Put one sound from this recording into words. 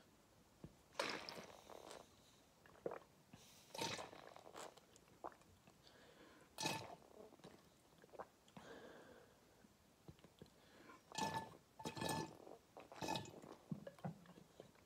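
A man sips and slurps water from a bottle close by.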